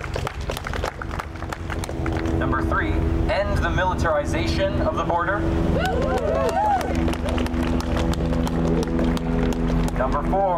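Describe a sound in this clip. A young man speaks loudly and with animation through a megaphone outdoors.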